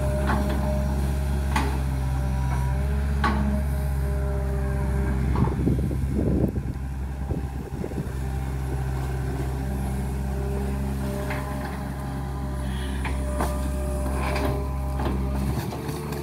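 Metal clanks and knocks from the excavator's arm.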